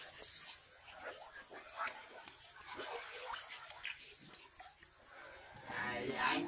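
Thick mud squelches under hands.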